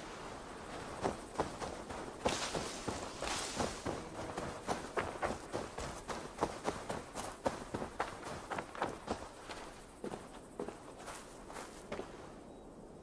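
Footsteps thud quickly on grass and leaves.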